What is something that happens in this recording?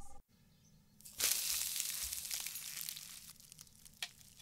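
An egg sizzles in hot oil.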